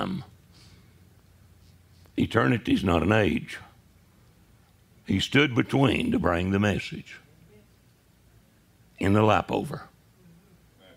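An elderly man preaches forcefully into a microphone, in short loud bursts with pauses.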